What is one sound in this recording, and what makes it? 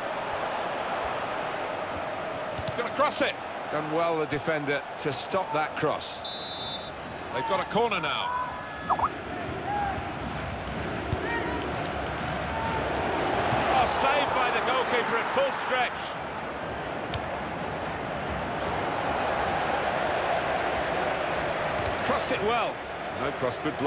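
A stadium crowd roars and chants steadily throughout.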